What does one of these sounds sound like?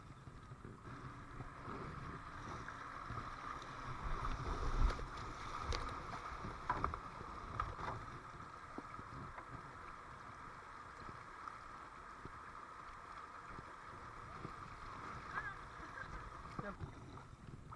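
Rapids rush and churn loudly around a kayak.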